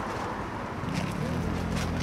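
A young man bites into crispy fried food.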